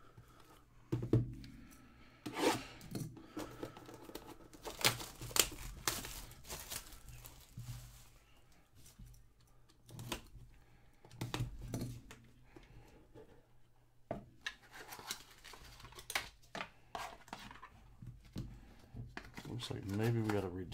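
Plastic wrap crinkles and rustles as hands handle a cardboard box.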